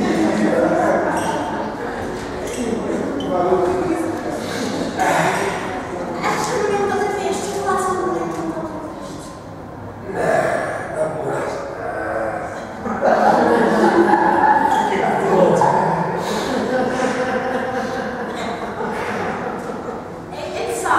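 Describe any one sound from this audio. A man speaks into a microphone with animation, heard through a loudspeaker in an echoing room.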